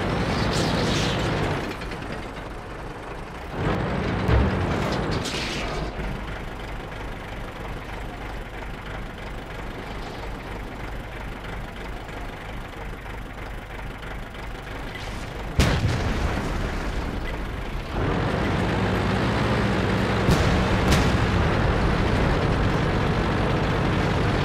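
A tank engine rumbles and clanks as the tank drives.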